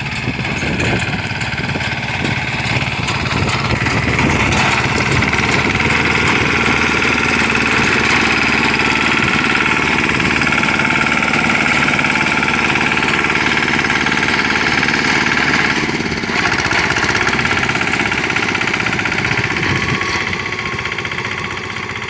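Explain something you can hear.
A small harvester engine runs loudly and steadily close by.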